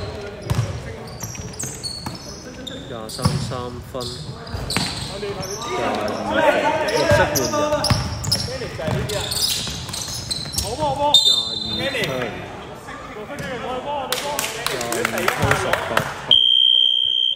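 Basketball sneakers squeak sharply on a hard court in a large echoing hall.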